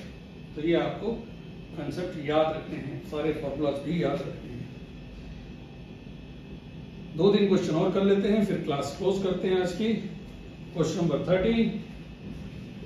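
A middle-aged man speaks calmly nearby, explaining.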